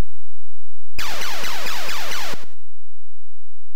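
A harsh electronic noise burst roars as a new wave begins.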